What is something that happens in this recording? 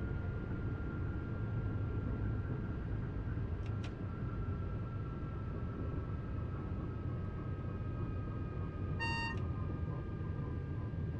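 An electric train motor whines, its pitch slowly falling as the train slows.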